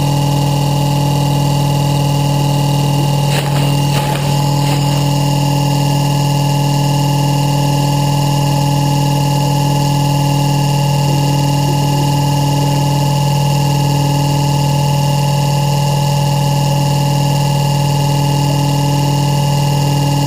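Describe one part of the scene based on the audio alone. A motor whirs steadily as a rotor spins close by.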